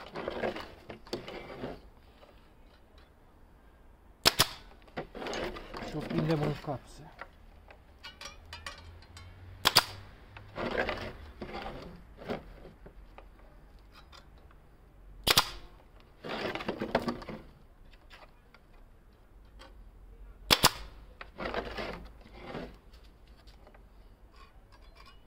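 Wood scrapes and knocks as a frame is handled.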